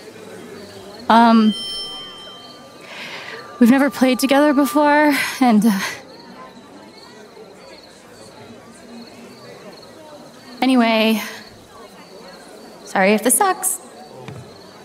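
A young woman speaks hesitantly into a microphone.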